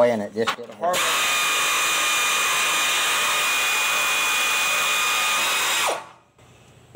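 A pneumatic impact wrench whirs and rattles steadily.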